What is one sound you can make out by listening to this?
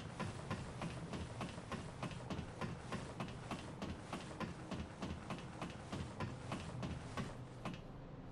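Footsteps clang rhythmically on metal ladder rungs as a figure climbs.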